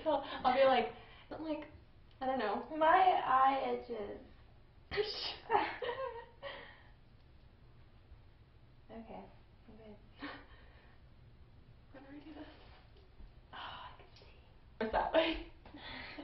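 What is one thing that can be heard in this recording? A teenage girl talks and laughs close by.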